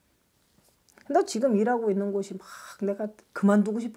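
A middle-aged woman speaks with animation into a close microphone.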